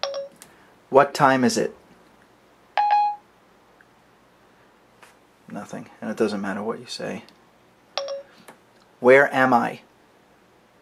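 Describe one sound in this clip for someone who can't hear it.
A synthetic voice speaks through a small phone speaker.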